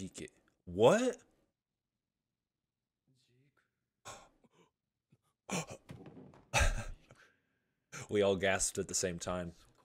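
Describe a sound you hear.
A young man exclaims and talks excitedly close to a microphone.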